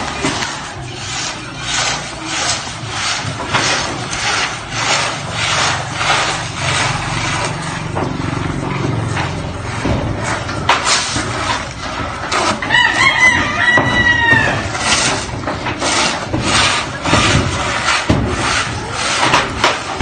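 Wooden rakes scrape and swish through loose grain in repeated strokes.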